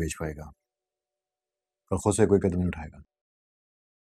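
A man speaks quietly and tensely nearby.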